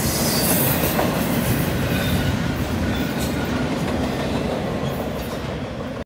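A long freight train rumbles past close by, its wheels clattering and squealing on the rails.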